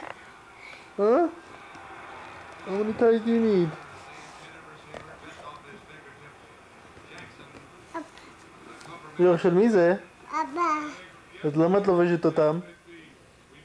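A toddler babbles and squeals up close.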